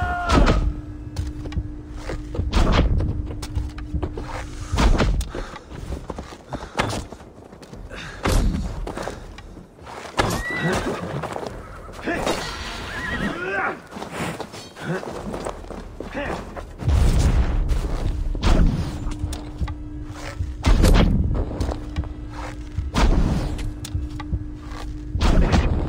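Heavy blows strike again and again in a close fight.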